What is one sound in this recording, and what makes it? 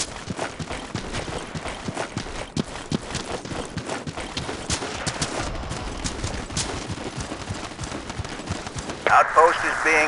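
Footsteps crunch quickly over grass and dirt.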